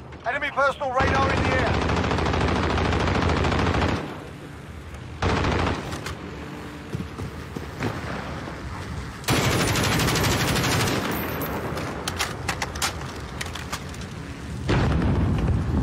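Rifle gunfire rings out in loud bursts.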